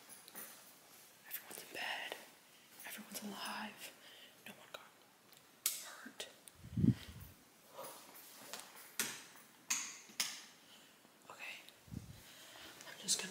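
A young woman talks casually, close by.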